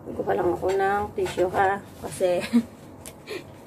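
A young woman speaks animatedly close to the microphone.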